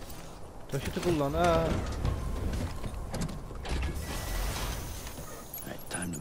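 Metal cargo cases clunk and rattle as they are loaded.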